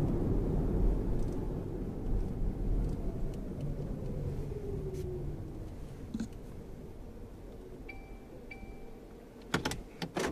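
A car's engine and tyres rumble from inside as the car slows down, growing quieter.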